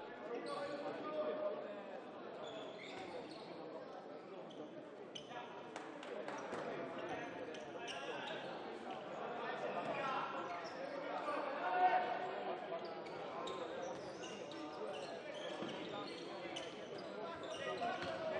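A crowd of spectators murmurs and shouts in a large echoing hall.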